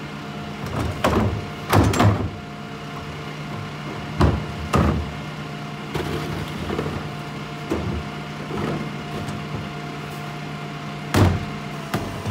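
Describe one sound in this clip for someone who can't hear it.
Plastic bins bang and thud against a garbage truck.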